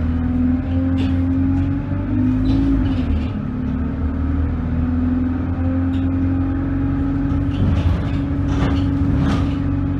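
Loose fittings rattle and clatter inside a moving bus.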